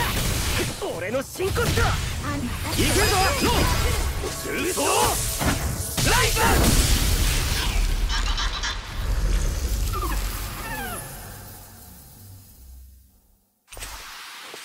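Sword slashes and magic blasts crash in a video game battle.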